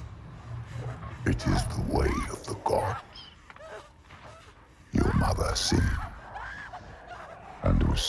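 A young woman speaks in anguish, sobbing and crying out.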